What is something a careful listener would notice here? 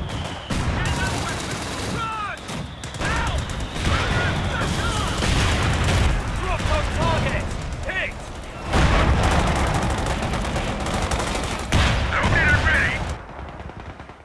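Gunfire crackles and pops in a battle.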